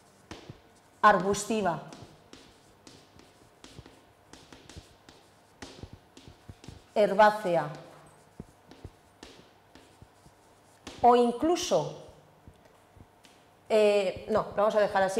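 A woman speaks in short bursts, in a room with some echo.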